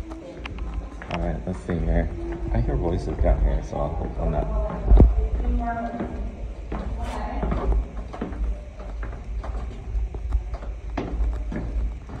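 Footsteps tread on stone steps.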